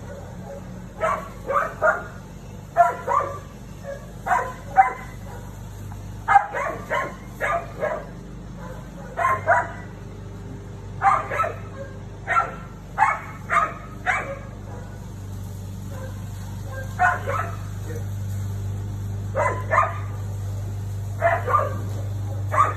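A dog barks in short bursts nearby, outdoors.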